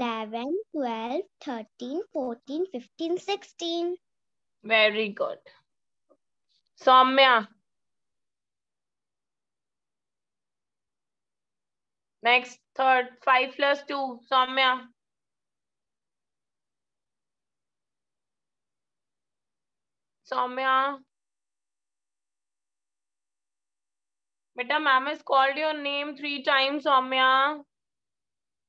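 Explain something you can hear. A young child speaks slowly and clearly, close to the microphone, in short bursts with pauses.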